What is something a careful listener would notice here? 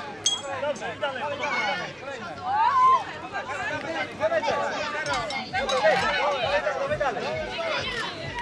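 A crowd of children and adults chatters and calls out outdoors.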